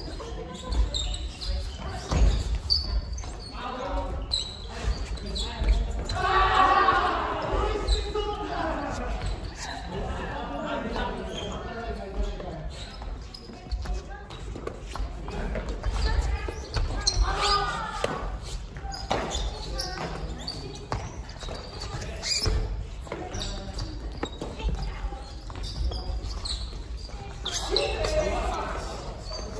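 Rackets hit a shuttlecock with sharp pops in a large echoing hall.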